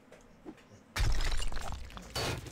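Rock crumbles and falls away in chunks.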